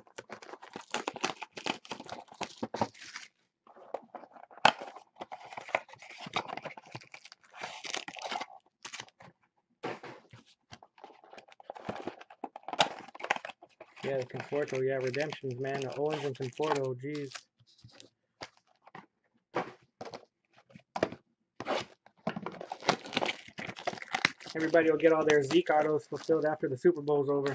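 Foil wrappers crinkle and tear as packs are opened by hand.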